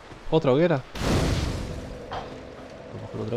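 A fire bursts alight with a loud whoosh.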